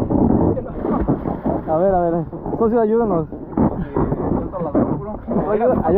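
Water splashes as a man climbs out of the sea onto an inflatable boat.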